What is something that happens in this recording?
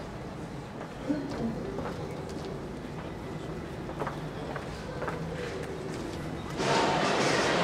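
Footsteps tap on a hard floor in an echoing corridor.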